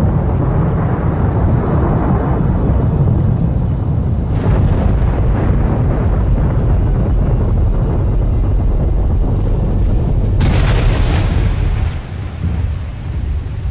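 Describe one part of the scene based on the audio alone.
Wind blows steadily and roughly outdoors.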